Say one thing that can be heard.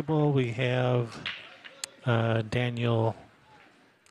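Pool balls clack loudly as a rack is broken and the balls scatter and roll.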